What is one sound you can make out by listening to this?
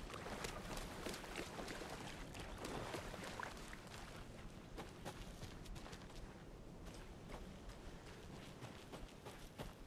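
Footsteps crunch steadily over leaves and dirt.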